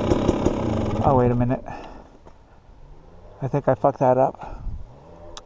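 A dirt bike engine revs sharply in short bursts.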